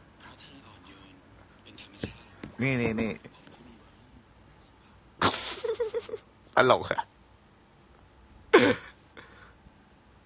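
A young man talks and laughs close by, with animation.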